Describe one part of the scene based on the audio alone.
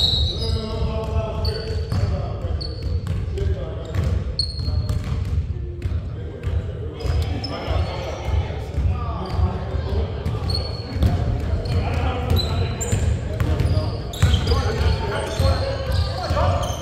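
Basketballs bounce with echoing thuds in a large hall.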